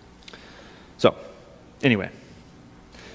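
A man speaks over a microphone in a large echoing hall, in short bursts with pauses.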